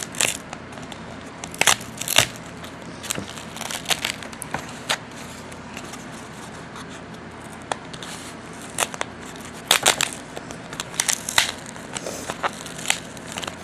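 Fingers tap and click against a plastic part close by.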